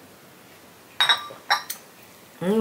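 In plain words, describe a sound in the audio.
A cup clinks on a saucer.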